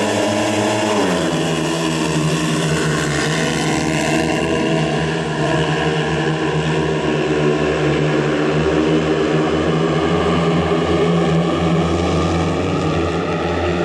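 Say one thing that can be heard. Several motorcycles roar away and race past at high speed.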